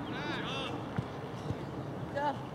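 A soccer ball is kicked with dull thuds on grass.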